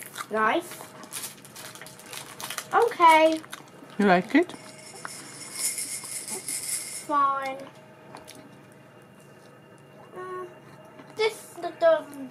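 Plastic toys rattle and clack as a child plays with them.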